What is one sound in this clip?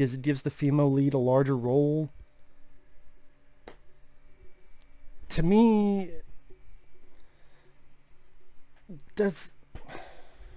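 A young man speaks close into a microphone in short, animated bursts with long pauses.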